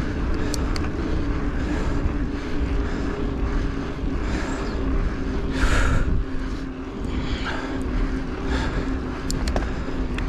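Wind rumbles steadily against the microphone.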